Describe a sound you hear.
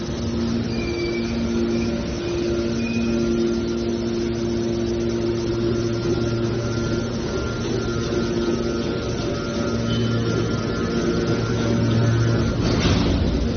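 Scrap metal creaks and crunches as it is compressed.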